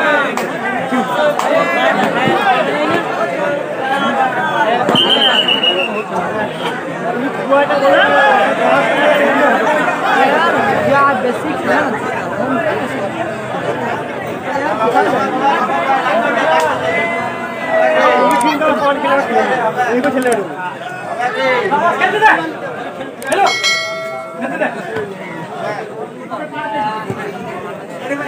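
A crowd of spectators shouts and cheers loudly all around.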